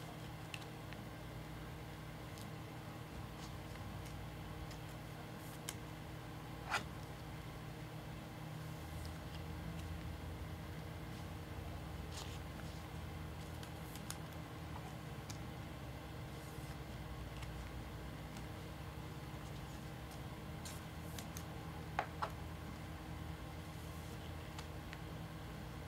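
Plastic card cases click and tap against a table.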